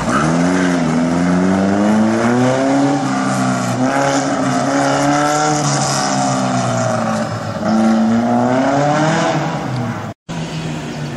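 A small car engine revs hard and rises and falls in pitch as it accelerates and slows around turns.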